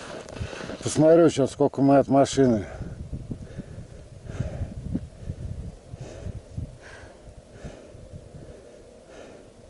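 Skis swish and crunch over packed snow in a steady rhythm.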